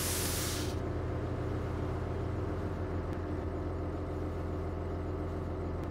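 A diesel city bus engine idles.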